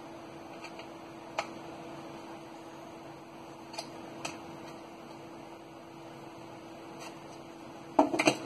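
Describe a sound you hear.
Hands handle a plastic device, tapping and clicking it.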